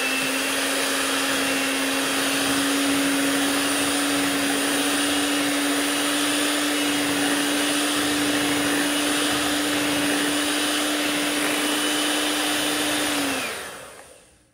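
An electric hand mixer whirs steadily in a bowl of batter.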